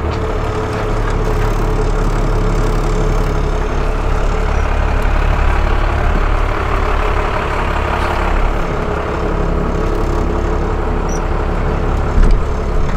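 An engine rumbles steadily inside a slowly moving vehicle.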